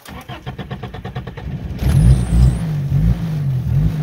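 A car engine cranks and starts up.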